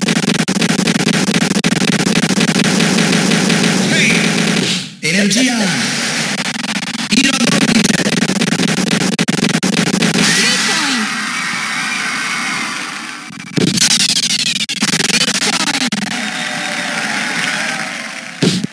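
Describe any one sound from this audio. Upbeat electronic game music plays loudly.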